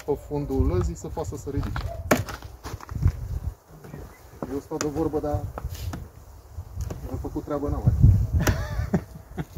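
A man talks calmly nearby outdoors.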